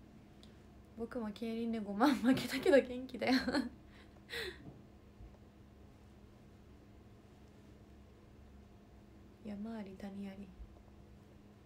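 A young woman speaks softly and closely into a microphone, pausing often.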